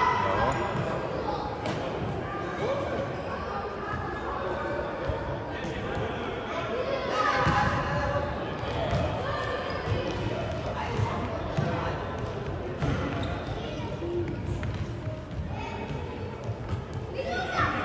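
A ball thuds against a hard floor and is kicked.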